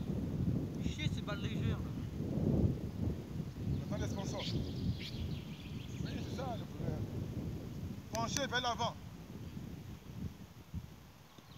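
Wind blows outdoors across the microphone.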